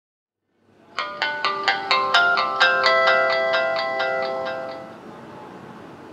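A phone plays a short startup jingle.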